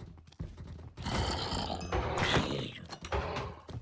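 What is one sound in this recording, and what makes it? A sword strikes a creature with sharp hits.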